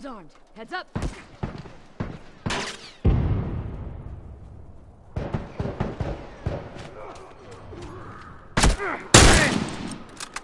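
Gunshots ring out loudly with echoing tails.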